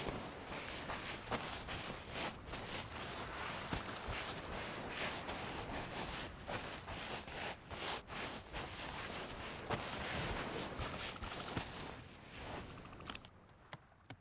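Waves wash onto a sandy shore.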